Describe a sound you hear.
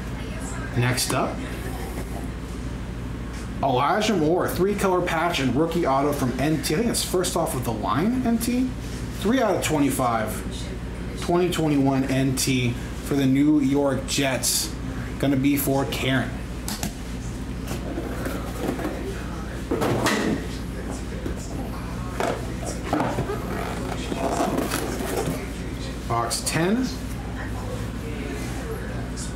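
Cardboard rustles as a box is handled.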